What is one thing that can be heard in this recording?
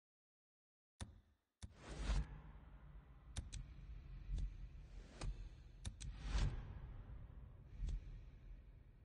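Short electronic menu clicks and a chime sound as an upgrade is confirmed.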